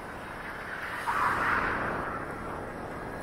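A car passes close by with a brief whoosh.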